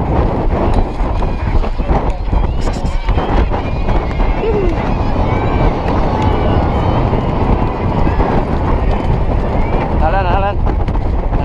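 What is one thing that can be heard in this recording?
Horses' hooves pound rapidly on turf close by.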